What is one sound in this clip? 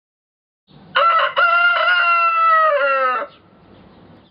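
A rooster crows loudly and long.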